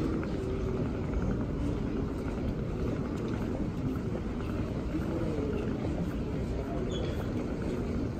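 A man talks on a phone nearby.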